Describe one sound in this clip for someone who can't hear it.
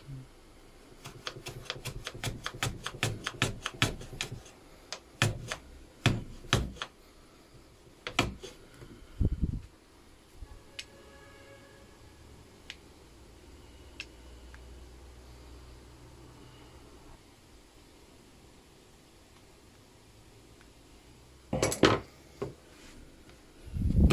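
A hand plane shaves the end grain of a hardwood block on a shooting board.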